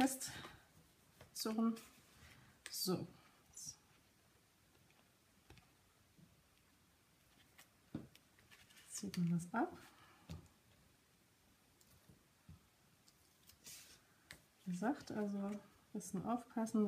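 Paper rustles and creases as it is folded.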